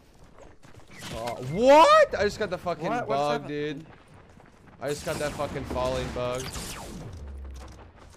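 A young man talks excitedly into a close microphone, his voice rising and falling.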